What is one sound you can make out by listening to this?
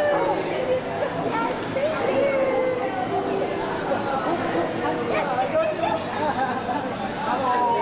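A middle-aged woman talks and laughs cheerfully close by.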